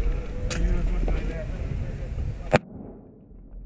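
Gunshots crack nearby.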